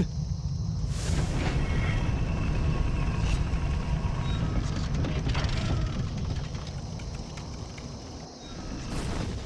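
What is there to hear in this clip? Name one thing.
A large machine rumbles and grinds heavily.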